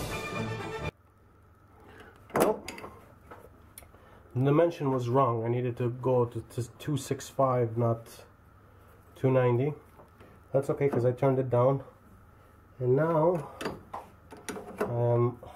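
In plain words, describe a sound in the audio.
A chuck key clinks against metal.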